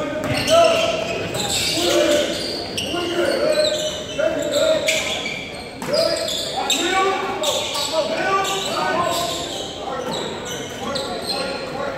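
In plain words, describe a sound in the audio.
Young players shout to each other across the court.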